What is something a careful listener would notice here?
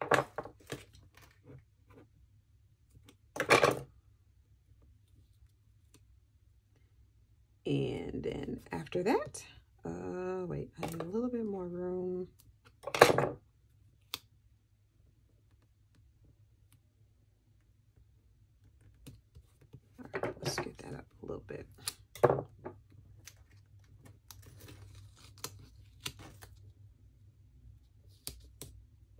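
Paper rustles and crinkles as stickers are handled.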